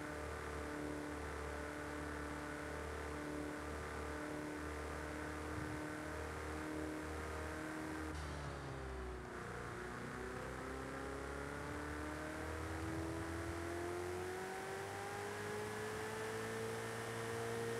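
A sports car engine roars steadily, drops in pitch as the car slows, then revs back up.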